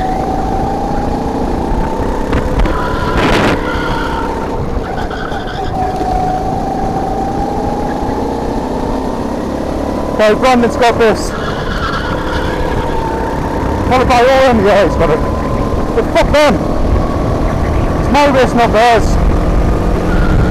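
Wind rushes past a moving open kart.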